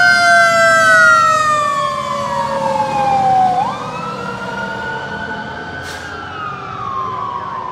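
A fire engine's siren wails close by, falling and rising in pitch.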